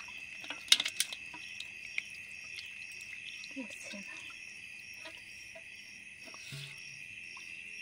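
Small fish flap and patter in a shallow basin of water.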